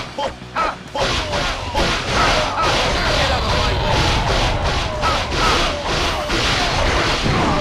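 Blades swoosh and strike again and again in a noisy battle.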